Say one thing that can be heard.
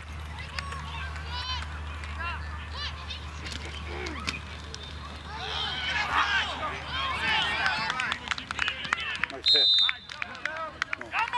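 Spectators shout and cheer from nearby, growing louder as the play runs.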